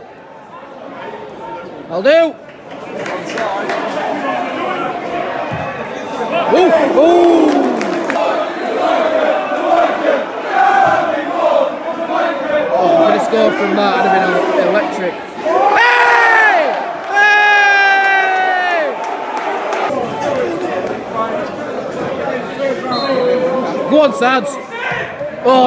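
A large stadium crowd cheers and chants loudly in a big open space.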